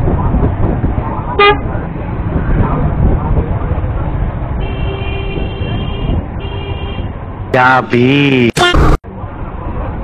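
People chatter nearby on a busy street.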